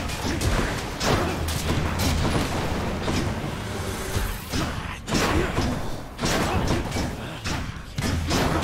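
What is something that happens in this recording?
Game sword slashes and magic blasts crackle and whoosh in quick bursts.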